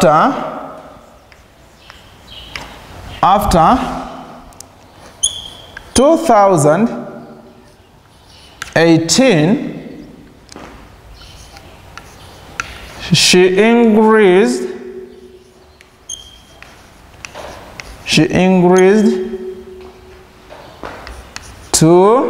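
A man speaks slowly and clearly in short phrases, in a room with some echo.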